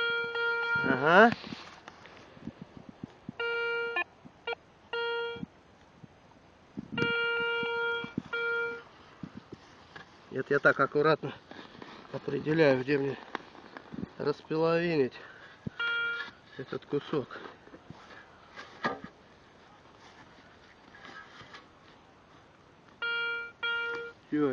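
A metal detector beeps in short bursts.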